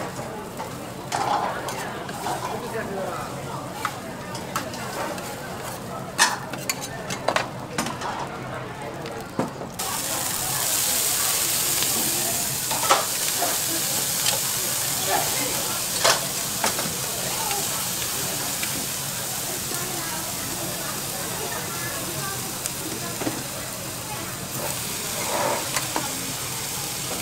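Metal spatulas scrape and clack on a hot griddle.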